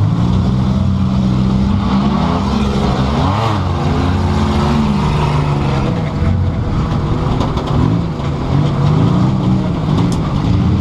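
Other race car engines roar close by.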